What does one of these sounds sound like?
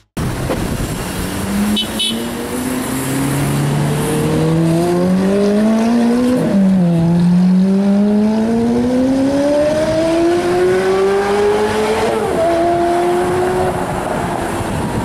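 A sports car engine roars and climbs in pitch as the car accelerates, shifting gears twice.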